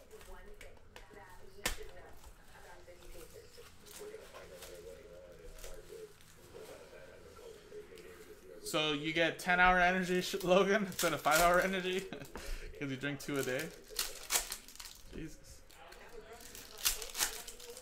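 Cardboard and foil wrappers crinkle and tear.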